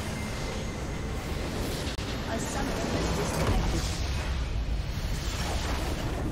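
Magic blasts and spell effects crackle and boom in a fight.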